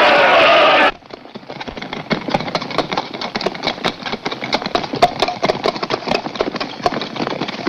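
Horse hooves clop on hard ground.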